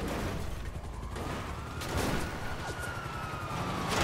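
Tyres skid on gravel.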